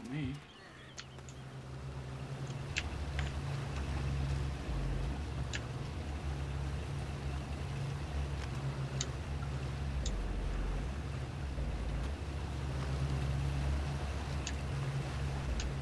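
A small boat's outboard motor drones steadily.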